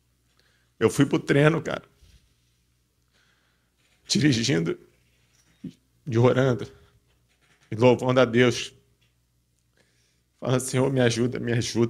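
A young man speaks into a microphone in short, lively phrases with pauses between them.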